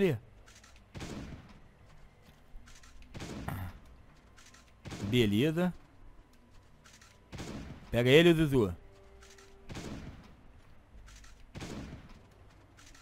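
A shotgun fires again and again, each blast loud and booming.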